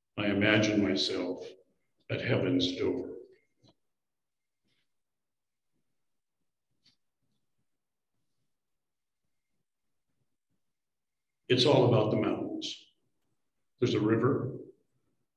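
An elderly man speaks calmly into a microphone over an online call, pausing between phrases.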